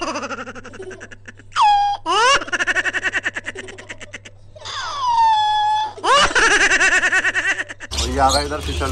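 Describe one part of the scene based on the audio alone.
A monkey squeals and chatters loudly.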